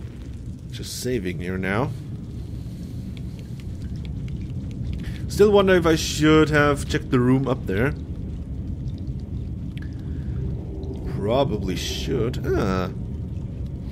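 A man talks into a close microphone in short, animated bursts.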